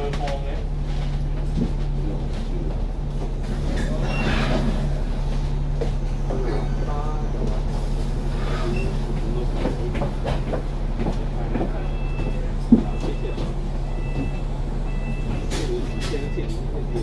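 Cars and lorries drive past on a city road.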